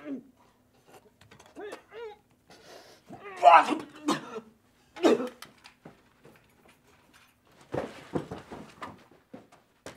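A man gasps and groans in discomfort.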